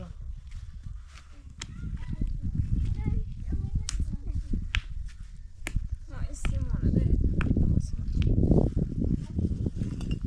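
A trowel taps and knocks on stone blocks.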